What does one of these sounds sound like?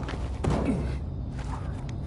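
Hands scrape and grip a stone ledge.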